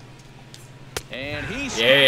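A ball smacks sharply off a bat.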